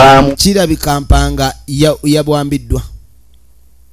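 A man speaks with emphasis nearby.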